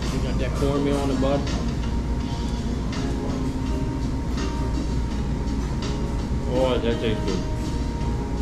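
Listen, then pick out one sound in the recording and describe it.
A man speaks casually, close by.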